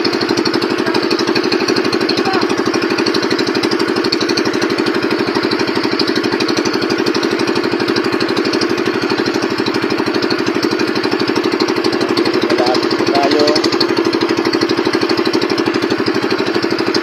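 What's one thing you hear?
A boat's outboard motor runs with a steady, throbbing drone.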